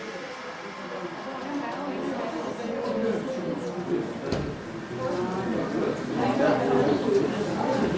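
A woman speaks into a microphone, heard over a loudspeaker in a room.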